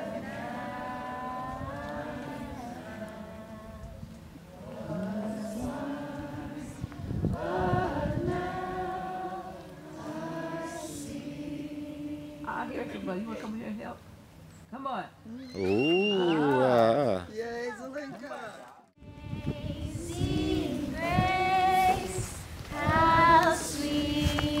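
A woman sings out loud and clear in the open air.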